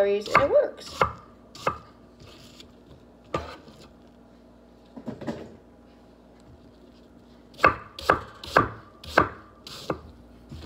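A knife chops through potato onto a wooden board with sharp knocks.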